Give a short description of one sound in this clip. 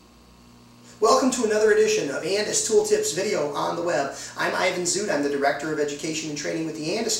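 A man talks calmly and clearly into a close microphone.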